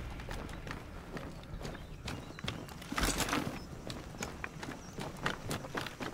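Armored footsteps thud on stone.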